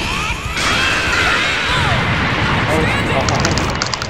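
A heavy final hit booms.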